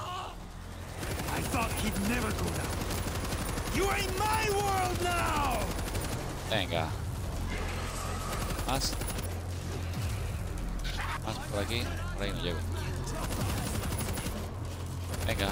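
A heavy machine gun fires in long, steady bursts.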